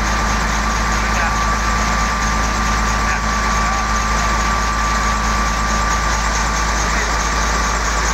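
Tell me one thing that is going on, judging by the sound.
Traffic hums steadily along a nearby street.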